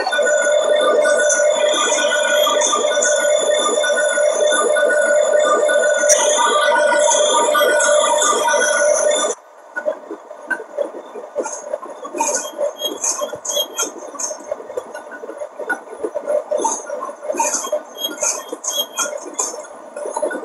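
Train wheels click and squeal on the rails as the train slows.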